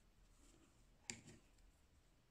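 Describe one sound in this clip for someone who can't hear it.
A small piece of crochet is pressed down onto a wooden table with a soft knock.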